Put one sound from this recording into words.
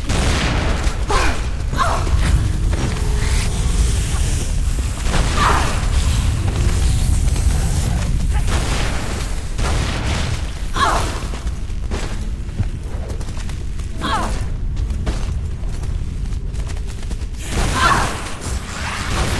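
Creatures shriek and screech.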